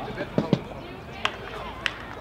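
Hockey sticks crack against a ball outdoors.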